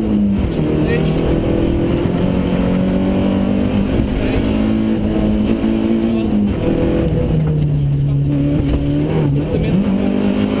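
An engine revs loudly, rising and dropping in pitch as gears change.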